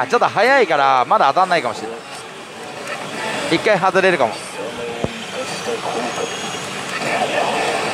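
A slot machine plays loud game sounds from its speaker.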